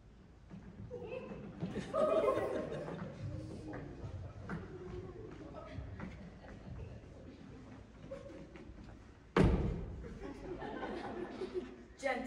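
Footsteps shuffle across a wooden stage.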